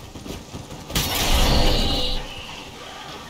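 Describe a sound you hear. A magical shockwave bursts with a loud whoosh.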